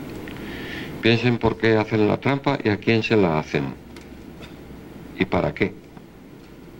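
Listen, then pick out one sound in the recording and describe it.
A middle-aged man speaks through a microphone over loudspeakers in an echoing hall.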